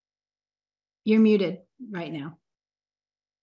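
A woman speaks briefly and calmly over an online call.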